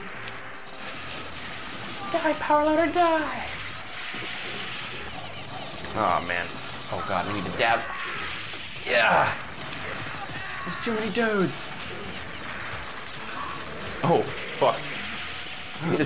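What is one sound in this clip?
Gunfire and blasts from an arcade fight go off again and again.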